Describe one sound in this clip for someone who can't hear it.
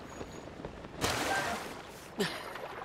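Water churns and splashes.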